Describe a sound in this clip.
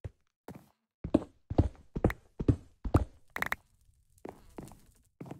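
A pickaxe strikes and breaks stone blocks with sharp knocks.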